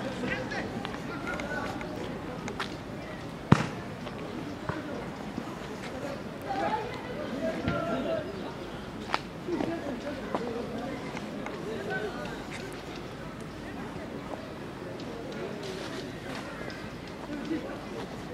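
Footsteps crunch on dry leaves and soil.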